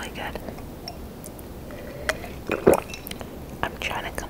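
A young woman gulps a drink close to a microphone.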